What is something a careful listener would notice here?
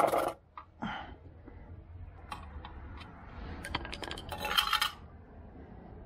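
A stick stirs and scrapes inside a metal paint can.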